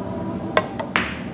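Pool balls knock together.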